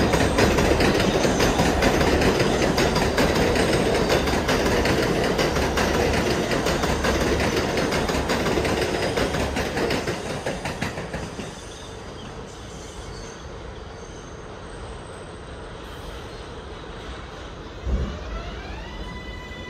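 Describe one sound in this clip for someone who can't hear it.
An idling train hums steadily at a platform.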